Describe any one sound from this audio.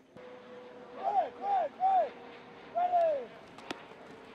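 A young man shouts short calls outdoors.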